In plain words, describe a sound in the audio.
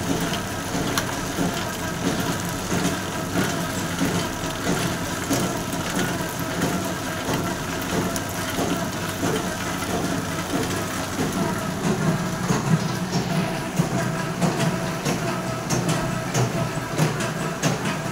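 A machine hums and clatters steadily nearby.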